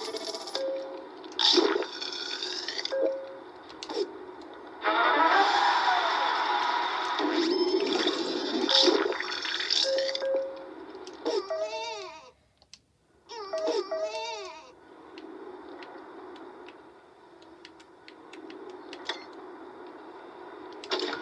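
Electronic game sound effects chime and whoosh.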